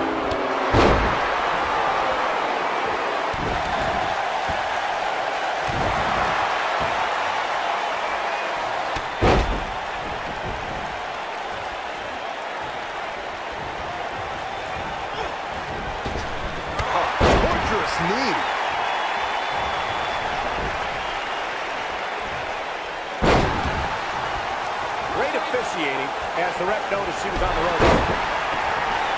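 A large crowd cheers steadily in an arena.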